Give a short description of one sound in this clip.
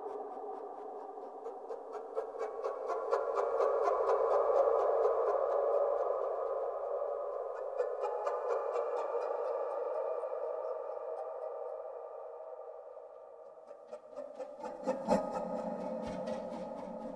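Small drums are tapped in a quick steady pulse.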